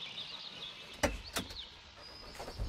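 A car door handle clicks and the door creaks open.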